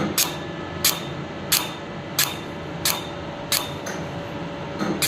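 A laser device fires with sharp, regular clicks.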